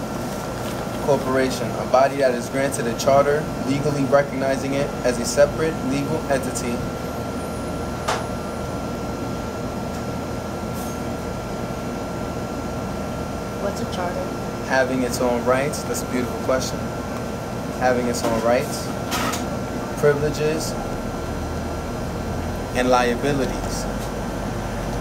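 A young man reads aloud calmly, close by.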